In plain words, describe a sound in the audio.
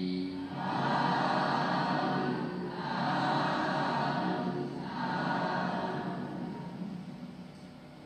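A man chants in a slow, steady voice through a microphone.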